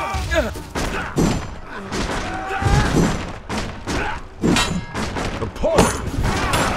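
An axe chops with heavy thuds into a wooden door.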